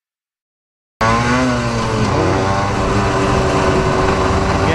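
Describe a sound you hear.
A motorcycle engine roars up close, its pitch shifting up and down.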